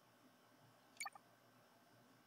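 A short bright chime rings once.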